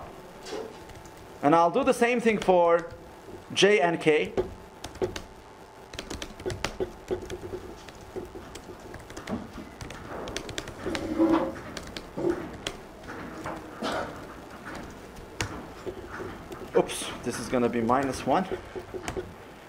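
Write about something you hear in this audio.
Keyboard keys click in quick bursts.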